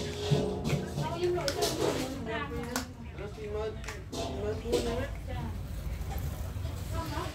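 Plastic toy bricks click and rattle.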